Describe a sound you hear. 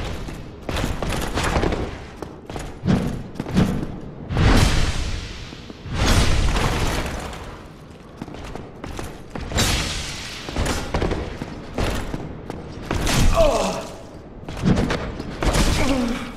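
Armoured footsteps thud and clank.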